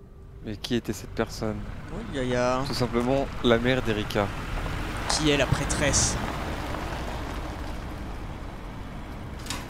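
A car engine hums as a car drives past.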